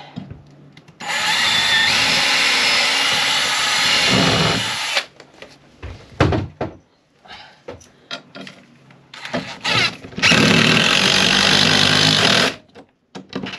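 A power drill whirs loudly in bursts.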